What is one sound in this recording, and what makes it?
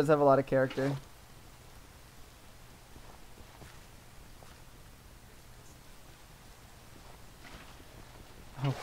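Rain patters steadily.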